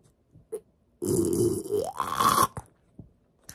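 A young man blows and whistles through pursed lips.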